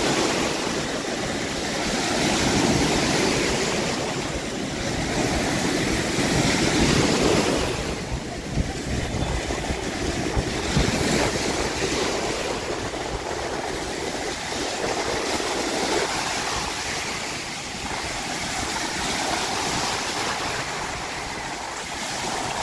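Waves break and crash close by, outdoors.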